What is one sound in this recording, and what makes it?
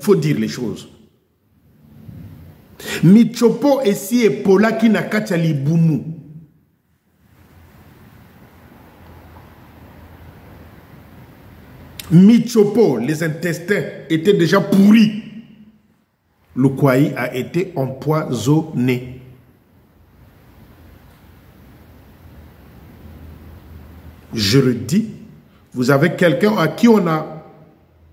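A middle-aged man speaks with animation into a microphone, close by, in bursts with pauses.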